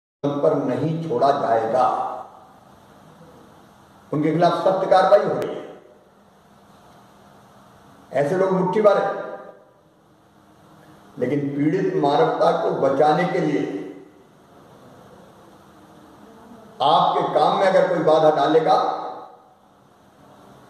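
A middle-aged man speaks calmly and firmly close by, in short bursts with pauses.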